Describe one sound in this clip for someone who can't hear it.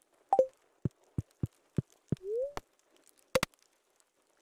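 Short, soft clicks tick from a game menu.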